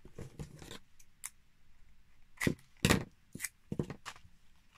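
Sticky tape peels off a roll.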